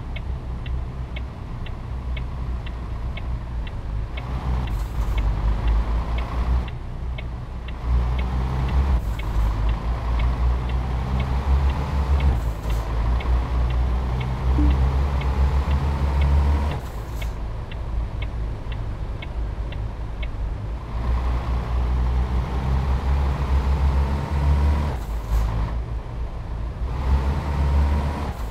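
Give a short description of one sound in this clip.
A heavy truck engine drones and rises in pitch as it speeds up.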